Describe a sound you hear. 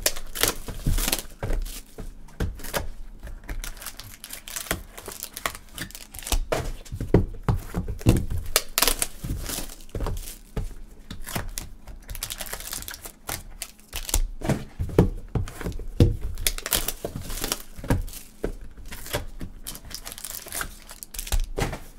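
Card packs tap and clack against each other.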